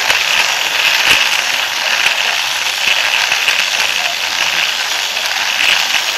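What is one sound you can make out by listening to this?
A small plastic car rattles and whirs steadily along a plastic track, close by.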